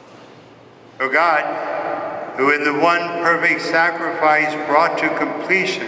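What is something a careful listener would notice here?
A man chants in a large echoing hall, heard through a microphone.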